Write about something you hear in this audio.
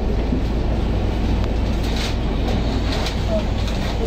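A bus drives past close by.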